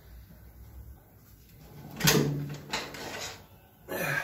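A heavy metal cover scrapes against metal as it is lifted.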